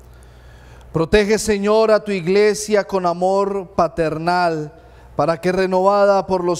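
A man chants slowly through a microphone.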